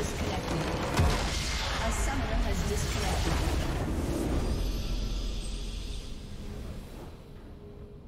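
A booming game victory sound swells and then fades away.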